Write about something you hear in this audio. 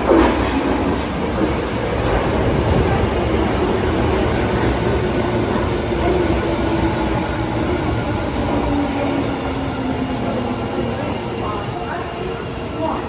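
A subway train rumbles loudly into an echoing station and slows with a falling whine.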